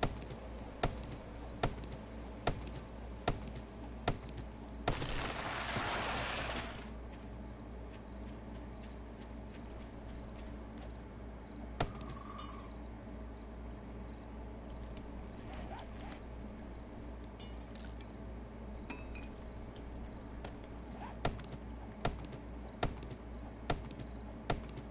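An axe chops into wood with sharp, regular thuds.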